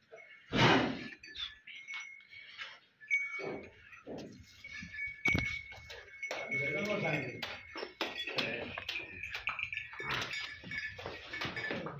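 Hooves shuffle and thud on soft dirt.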